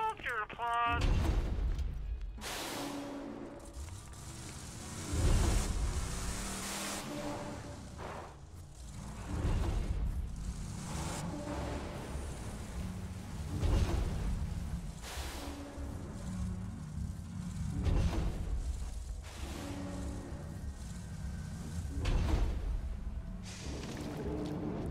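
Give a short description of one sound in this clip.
A vehicle engine rumbles and roars.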